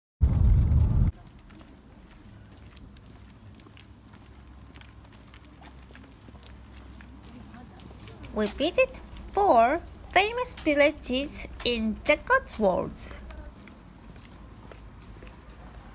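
Footsteps walk along a pavement outdoors.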